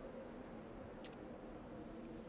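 A game menu closes with a short click.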